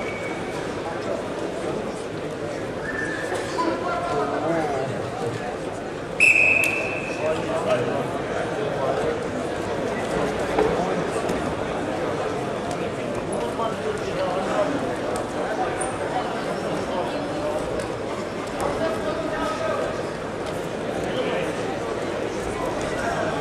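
A crowd of spectators murmurs and calls out in a large echoing hall.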